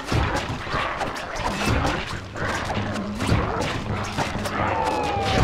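A cane swishes quickly through the air.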